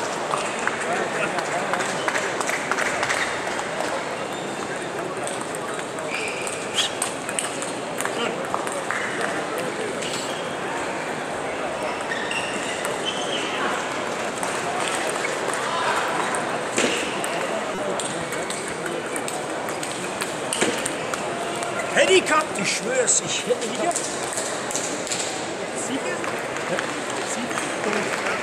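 A large crowd murmurs and chatters steadily in a big echoing hall.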